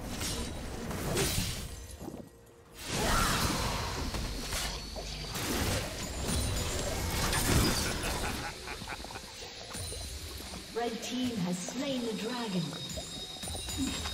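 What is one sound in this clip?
Game spell effects whoosh and hits clash during a fight.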